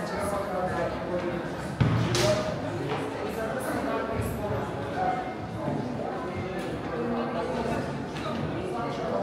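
Footsteps shuffle on a stone floor in an echoing passage.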